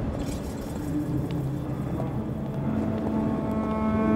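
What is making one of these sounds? Footsteps sound on a stone floor in an echoing hall.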